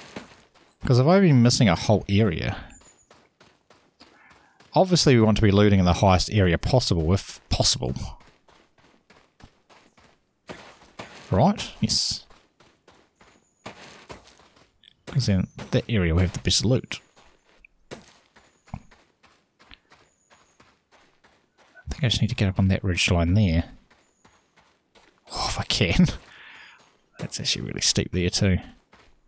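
Footsteps scrape steadily over rocky ground.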